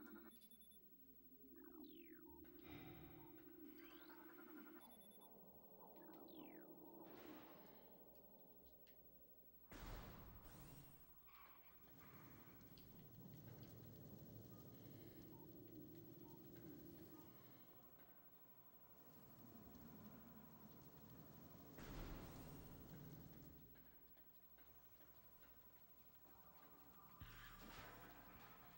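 A man talks calmly into a headset microphone.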